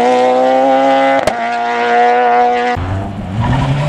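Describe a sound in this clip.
A rally car's engine screams at high, steady revs as the car pulls away.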